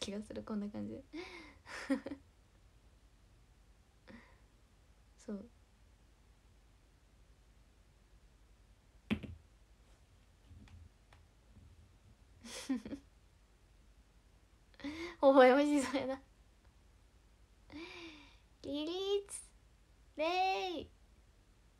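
A young woman chats cheerfully close to the microphone, in short bursts with pauses.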